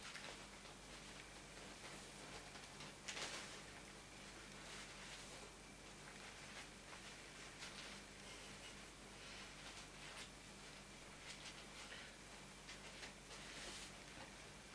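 Fabric rustles and crinkles softly up close.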